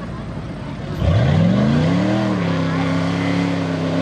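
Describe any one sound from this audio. A truck engine revs loudly and roars as the truck churns through mud.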